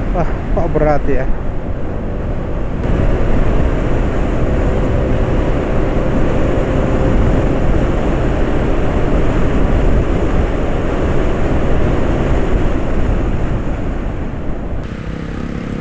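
Wind roars loudly past a moving motorbike.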